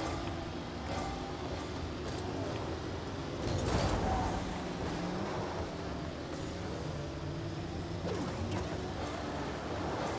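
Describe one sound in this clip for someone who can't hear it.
Game car engines hum steadily.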